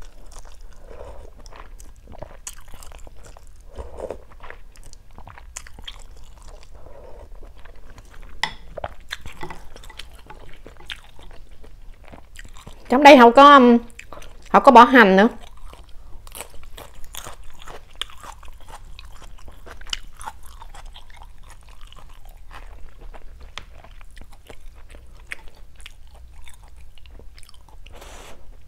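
A woman chews and slurps food close to a microphone.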